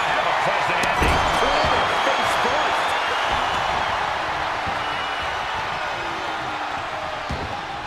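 Heavy bodies slam down onto a wrestling ring mat with deep thuds.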